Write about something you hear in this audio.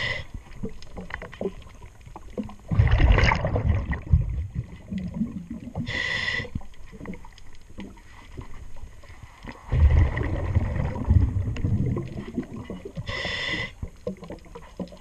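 A paddle blade splashes and churns through water in strokes, heard underwater and muffled.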